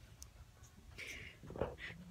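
A young woman laughs briefly close by.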